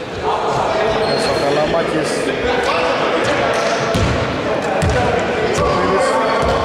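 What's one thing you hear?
Men talk in the distance in an echoing hall.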